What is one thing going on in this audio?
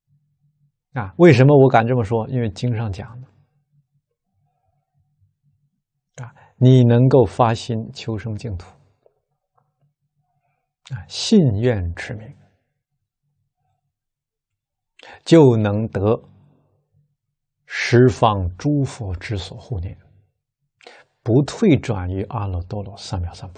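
A middle-aged man speaks calmly into a close microphone, in phrases with pauses between them.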